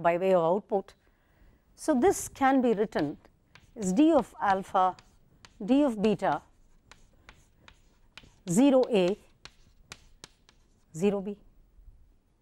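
A middle-aged woman speaks calmly through a microphone, in short phrases with pauses.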